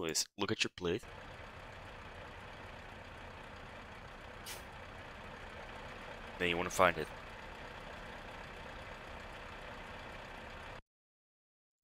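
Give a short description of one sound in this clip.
A truck engine idles steadily.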